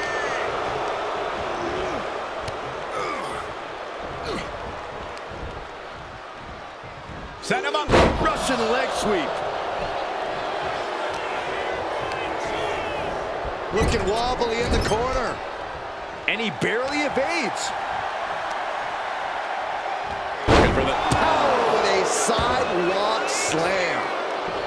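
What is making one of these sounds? A large crowd cheers and roars throughout, in a big echoing arena.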